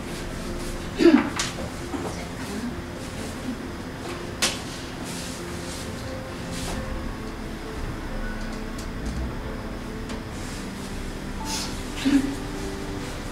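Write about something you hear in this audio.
Feet stamp sharply on a wooden floor now and then.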